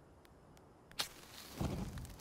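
A fire flares up with a whoosh and crackles.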